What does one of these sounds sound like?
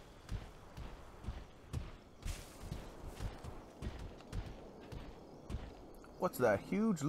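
Footsteps pound quickly on soft ground.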